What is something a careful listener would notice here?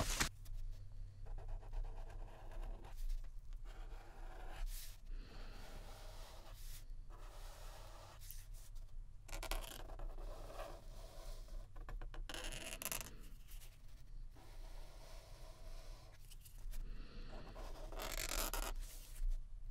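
A pen scratches on paper in short strokes.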